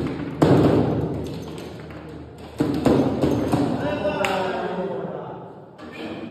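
Foosball rods clatter as players spin and slide them.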